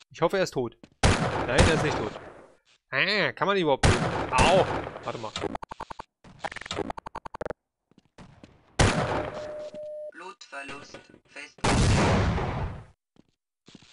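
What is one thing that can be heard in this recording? A pistol fires sharp shots that ring out.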